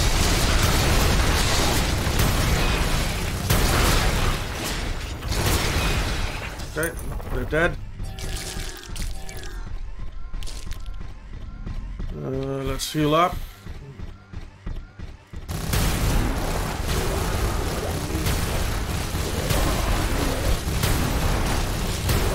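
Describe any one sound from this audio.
Laser weapons fire and blasts boom in rapid, dense bursts.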